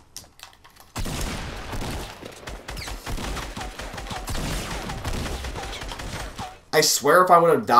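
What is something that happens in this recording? Video game gunfire blasts rapidly.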